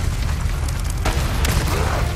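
A rocket launcher fires with a loud blast.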